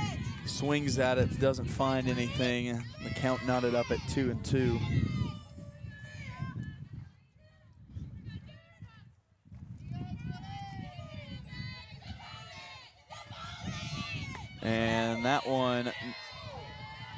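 Young women chant and cheer loudly outdoors.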